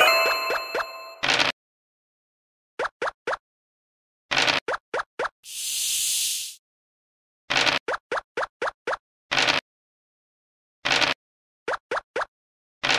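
Game pieces click as they hop across the board.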